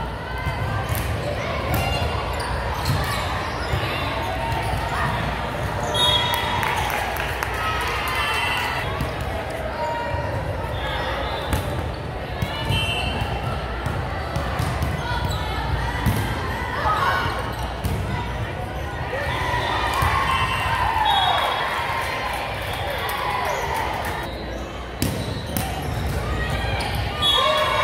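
Young women call out and chatter across the echoing gym.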